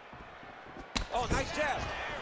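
A punch lands with a dull thud.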